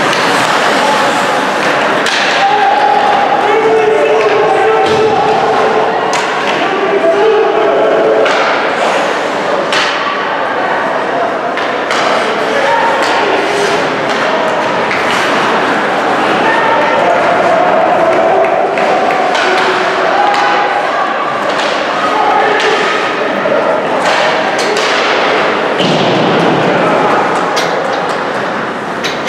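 Spectators and players shout and call out loudly in an echoing rink.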